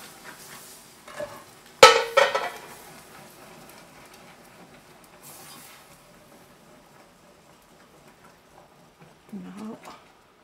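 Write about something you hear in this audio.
A wire whisk clinks against a metal pot.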